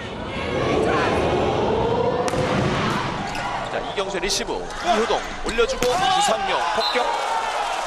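A volleyball is smacked hard by hand, several times.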